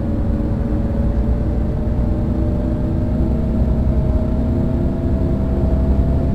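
A bus engine hums and slowly rises in pitch as the bus speeds up.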